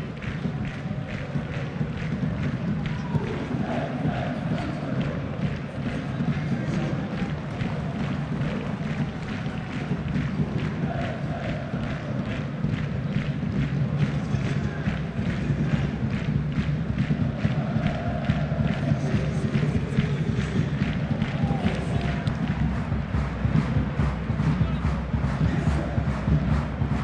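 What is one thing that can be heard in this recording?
A large crowd chants steadily in an open stadium.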